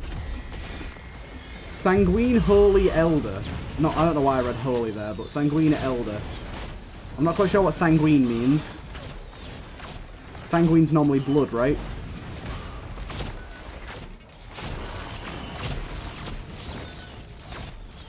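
Laser weapons fire and explode in rapid bursts.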